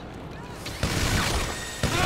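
A gun fires rapid shots.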